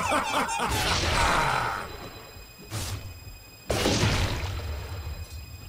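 Magical spell effects burst and whoosh in a fight.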